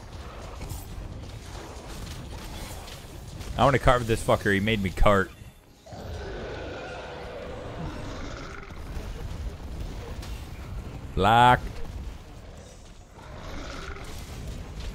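Blades clang and slash in combat.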